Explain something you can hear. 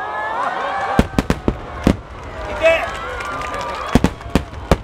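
Fireworks explode with loud, sharp bangs.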